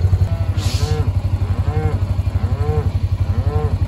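Cattle bawl nearby.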